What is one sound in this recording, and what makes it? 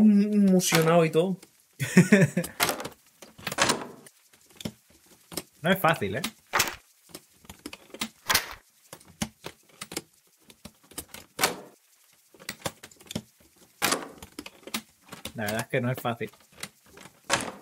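A combination lock's dials click as they turn.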